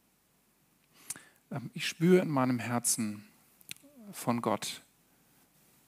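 A man speaks calmly through a headset microphone.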